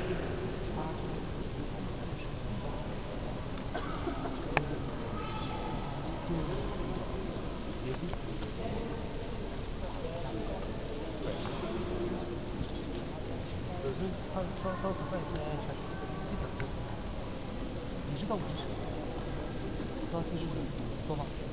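Many people murmur and talk quietly in a large echoing hall.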